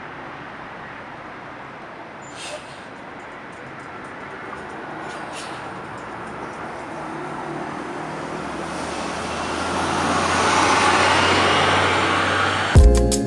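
A bus engine rumbles as the bus approaches and passes close by.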